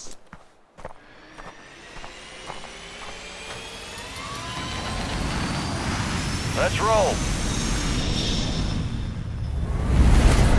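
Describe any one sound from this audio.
A jet engine roars, growing louder as a large plane takes off.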